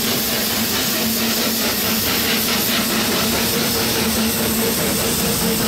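A small steam locomotive hisses and chugs steadily nearby.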